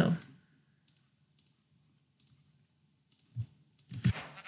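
Soft clicks sound as items are placed in a game menu.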